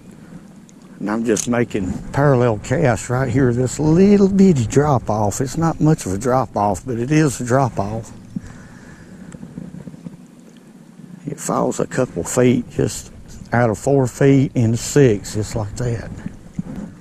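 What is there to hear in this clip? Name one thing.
An older man talks calmly, close by.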